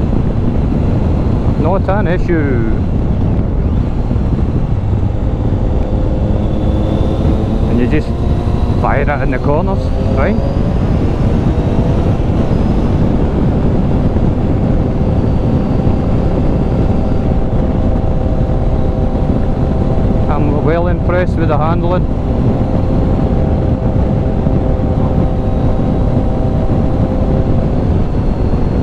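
A motorcycle engine hums steadily throughout.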